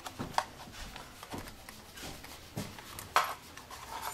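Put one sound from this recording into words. A metal tool scrapes inside a wooden instrument body.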